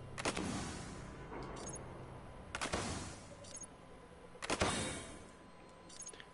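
Short whooshing menu sounds play with soft chimes as selections change.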